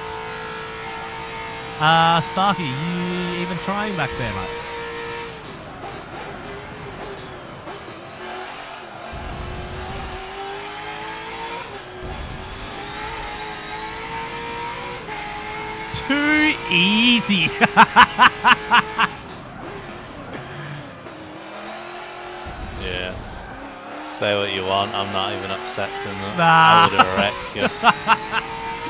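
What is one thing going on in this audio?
A racing car engine roars, rising in pitch as it speeds up and dropping between gear changes.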